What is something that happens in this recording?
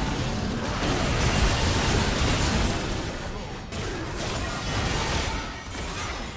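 Magic spells crackle and whoosh amid a fast-paced battle.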